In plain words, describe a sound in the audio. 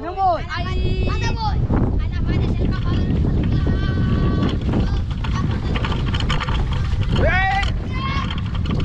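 Young boys shout and squeal excitedly outdoors.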